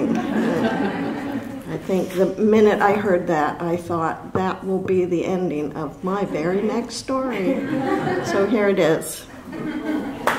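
A middle-aged woman reads aloud into a microphone.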